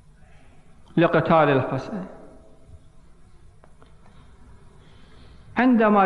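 A man speaks calmly into a microphone, heard through a loudspeaker in a large echoing hall.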